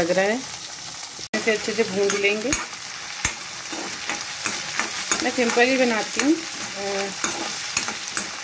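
Onions sizzle softly in hot oil.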